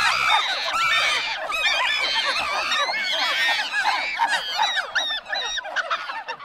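High-pitched, sped-up cartoon voices shriek and chatter rapidly.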